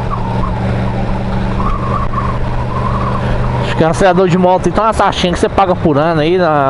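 A motorcycle engine hums steadily at low revs.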